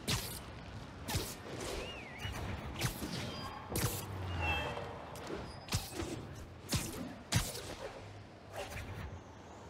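Wind rushes past during fast swinging through the air.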